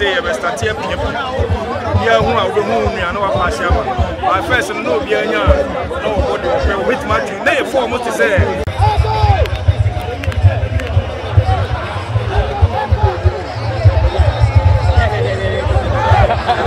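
A crowd cheers and chatters in the distance.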